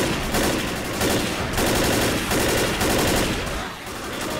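An assault rifle fires rapid bursts of gunfire.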